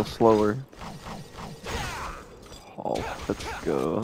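A sword swishes sharply through the air.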